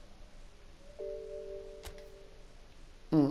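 A short electronic menu chime sounds.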